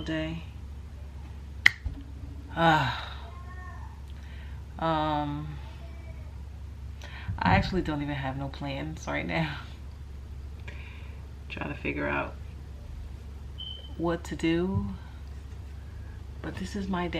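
A young woman speaks slowly and softly close to a microphone, with long pauses.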